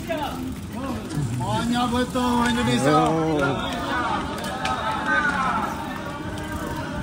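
A young man talks cheerfully close by.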